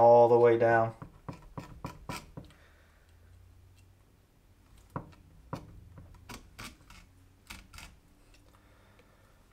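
A knife scrapes and taps on a cutting board.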